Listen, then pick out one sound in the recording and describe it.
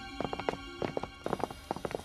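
Boots tread across a tiled floor.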